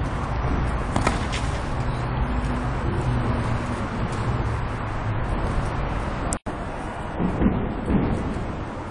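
A tennis ball is struck with a racket and bounces in a large echoing hall.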